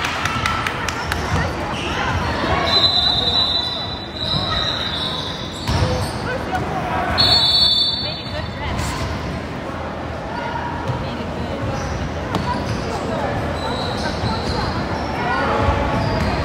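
Young players shout and call out in a large echoing gym.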